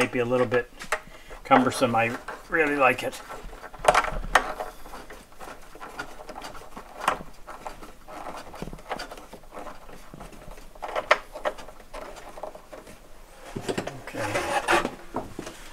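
Small clicks and knocks sound as hands fit a part into a wooden rack.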